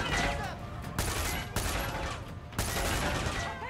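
Bullets clang against metal.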